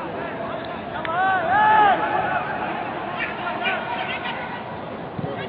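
Men shout to each other across a large, open sports ground.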